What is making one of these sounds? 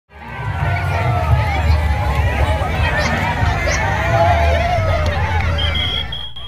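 A large crowd shouts and cheers excitedly outdoors.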